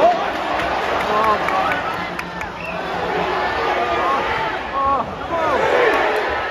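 A large stadium crowd roars and chants all around.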